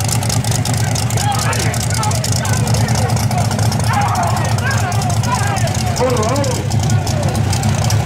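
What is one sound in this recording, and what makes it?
Men in a crowd talk and call out over the engine.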